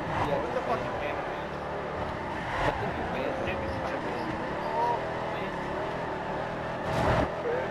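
A van engine roars and revs as it races.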